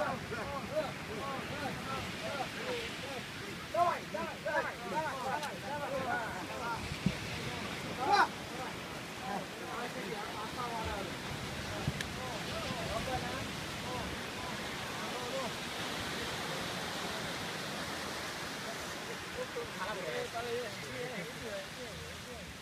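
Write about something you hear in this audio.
Several men shout and chant together nearby, outdoors.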